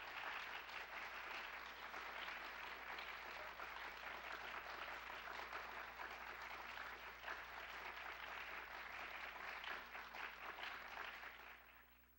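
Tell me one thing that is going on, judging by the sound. An audience claps and applauds loudly in a large hall, then the applause fades.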